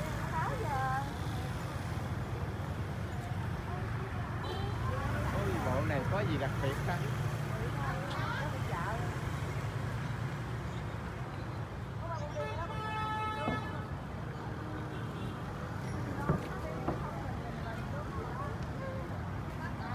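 Motorbikes hum past.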